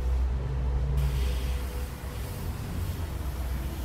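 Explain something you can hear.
An airbrush hisses softly as it sprays.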